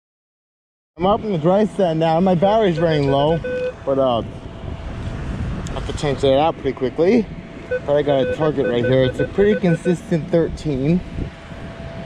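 A metal detector beeps and warbles in rising and falling tones.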